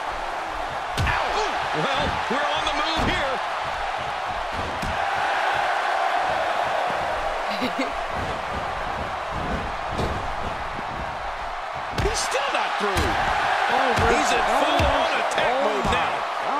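Bodies slam hard onto a wrestling mat with heavy thuds.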